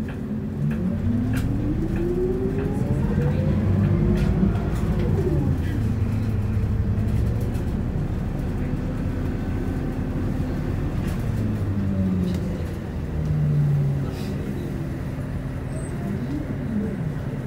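Traffic rumbles past on the street.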